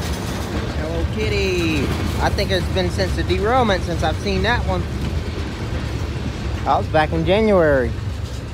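Train wheels squeal and screech against the rails.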